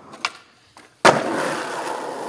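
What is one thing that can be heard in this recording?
A skateboard slaps down on concrete.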